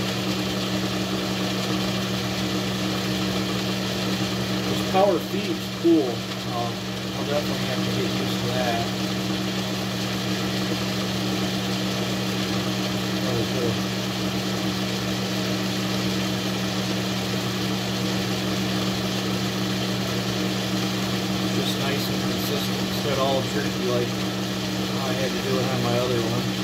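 A cutting tool scrapes against metal.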